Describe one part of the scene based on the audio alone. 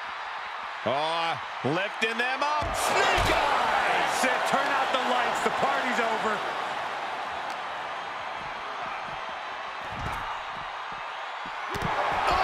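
A large arena crowd cheers.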